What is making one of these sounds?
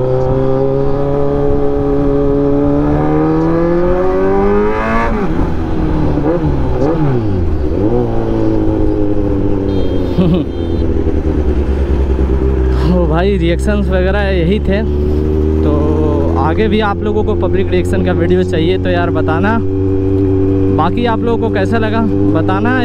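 A motorcycle engine hums steadily, its pitch rising as it speeds up and dropping with each gear change.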